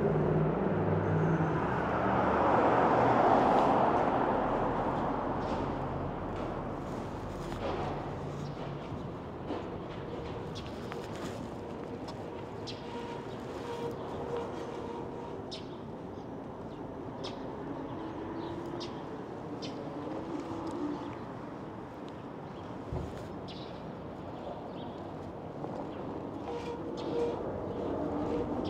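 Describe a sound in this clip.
An e-bike rattles over bumps in the pavement.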